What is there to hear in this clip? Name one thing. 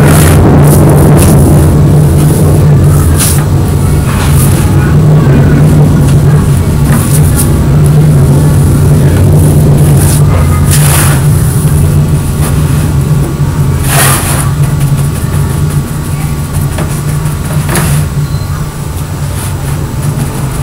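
A brush scrapes and swishes across stiff paper.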